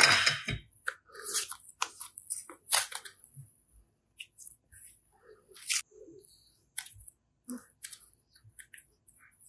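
Soft clay squishes and crinkles between fingers, close up.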